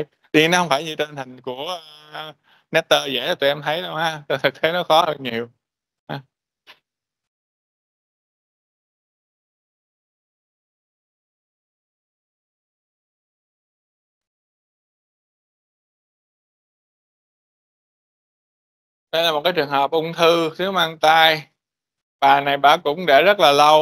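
A man lectures calmly through an online call microphone, with long pauses.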